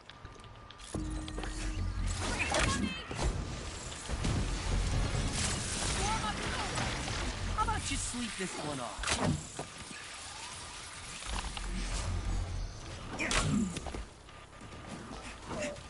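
Energy blasts boom and whoosh.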